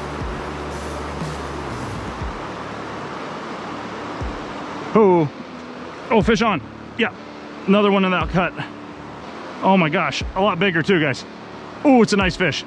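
A river rushes steadily over rapids nearby.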